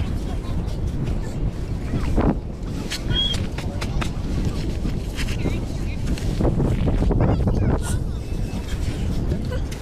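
A metal tube squelches as it is pushed into wet sand.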